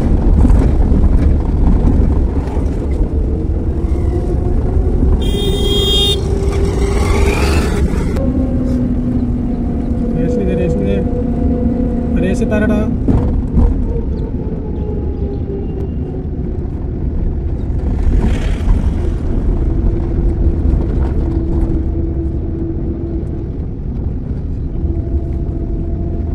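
Road noise and a car engine rumble from inside a moving car on a rough road.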